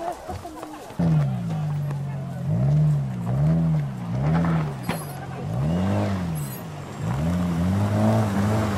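A siren wails from a car in a crowd.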